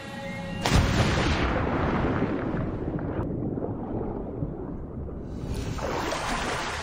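Water gurgles dully underwater.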